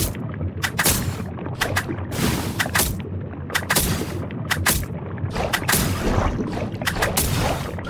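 Sharp weapon strikes hit a large fish again and again.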